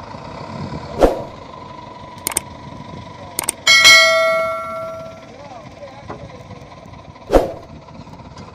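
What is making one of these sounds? A hollow steel tank clangs and rings.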